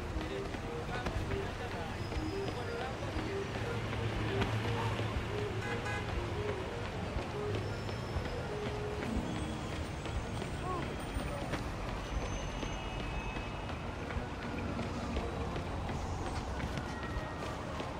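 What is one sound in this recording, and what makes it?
Footsteps patter on a pavement.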